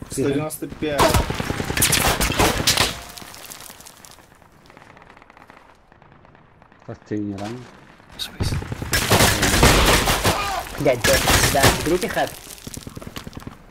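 Loud explosions boom nearby and rumble.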